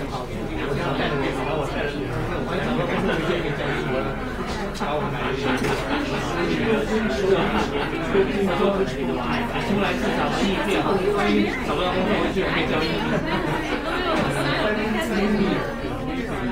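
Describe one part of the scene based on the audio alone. A crowd of men and women chat at once in a room, their voices a steady murmur.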